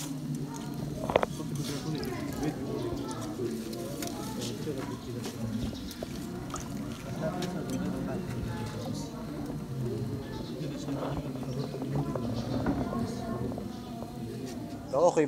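Men talk nearby in calm, overlapping voices.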